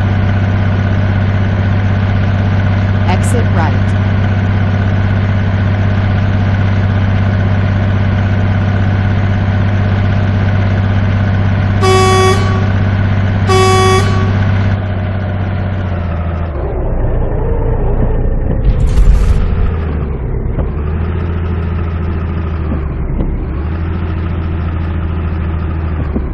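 A truck engine drones steadily, then drops lower as the truck slows.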